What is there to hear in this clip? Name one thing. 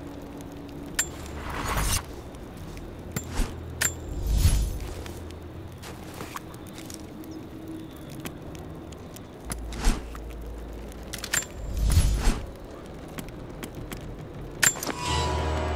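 Short clicks sound as menu options change.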